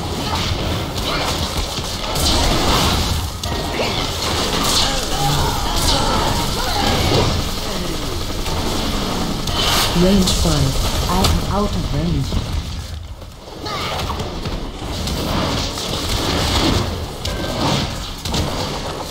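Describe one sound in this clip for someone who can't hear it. Spell effects crackle and strike during a fantasy video game battle.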